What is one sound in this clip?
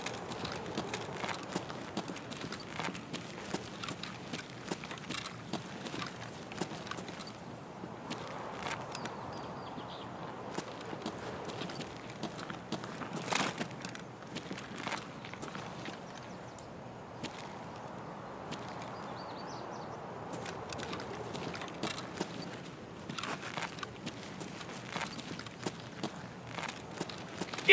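Footsteps thud on stone steps and crunch on gravel.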